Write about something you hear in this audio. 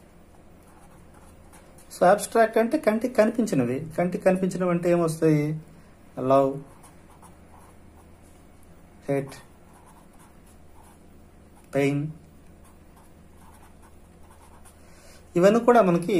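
A felt marker squeaks softly across paper.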